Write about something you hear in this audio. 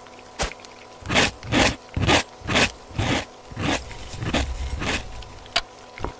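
Something is scraped hard across a grater in quick, rhythmic strokes.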